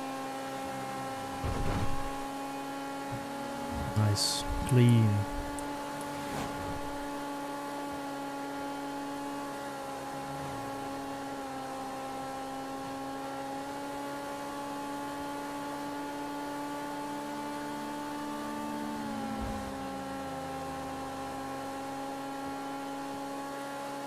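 A car engine hums steadily as a car drives.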